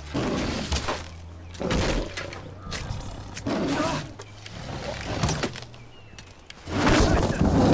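A tiger growls and snarls close by.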